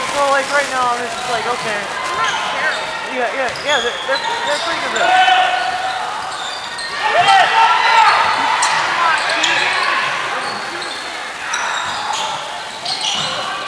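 A crowd of spectators calls out and cheers.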